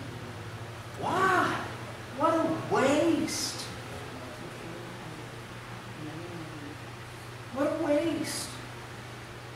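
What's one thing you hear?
A man speaks calmly through a microphone in an echoing room, with long pauses.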